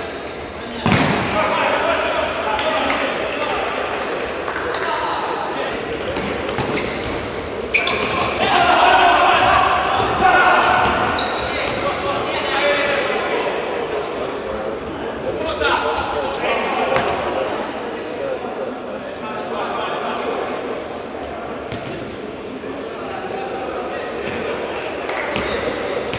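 A crowd of spectators cheers and chatters in a large echoing hall.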